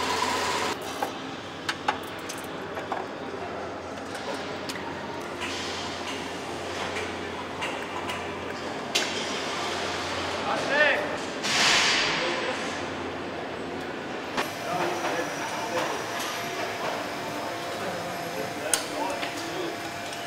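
Metal tools clink and knock against engine parts.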